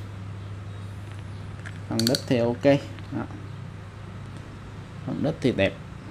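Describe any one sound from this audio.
A fishing reel clicks and whirs as its handle is turned by hand.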